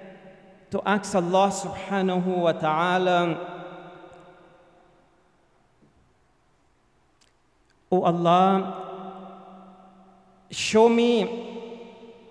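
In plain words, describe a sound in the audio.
A middle-aged man chants melodically into a microphone in an echoing hall.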